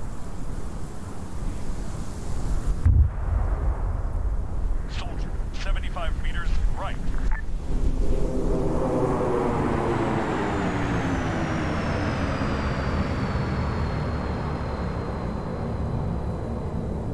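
A propeller aircraft drones overhead, growing louder as it passes and its pitch slowly drops.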